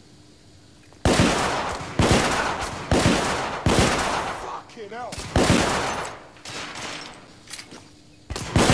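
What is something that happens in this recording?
A revolver fires loud shots that echo in a tunnel.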